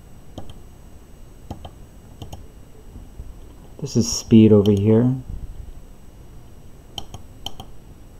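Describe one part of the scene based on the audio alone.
A small push button clicks under a finger.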